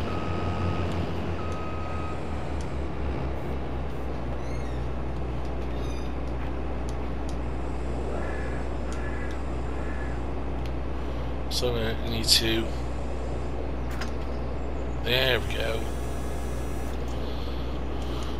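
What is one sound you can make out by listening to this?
A combine harvester's engine hums steadily.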